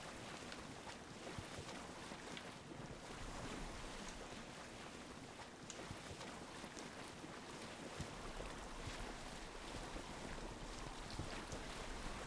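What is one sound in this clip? Water splashes and rushes against the hull of a sailing boat.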